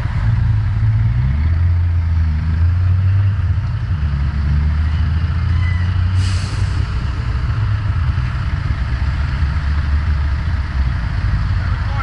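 A diesel truck engine idles close by.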